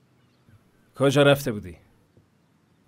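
A man speaks in a weary voice close by.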